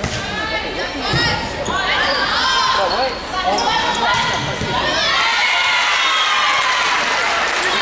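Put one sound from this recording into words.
A volleyball is hit with sharp smacks.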